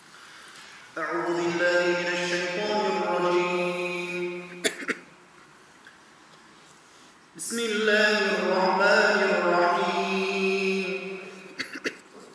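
A man chants in a long, melodic voice through a microphone and loudspeakers, echoing in a large hall.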